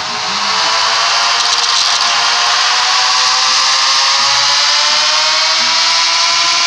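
A racing motorcycle engine screams at high revs, its pitch rising steadily as it speeds up.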